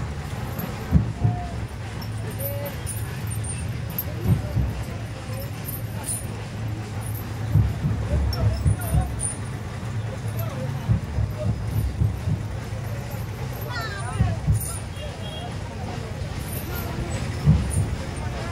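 Men talk faintly in the distance.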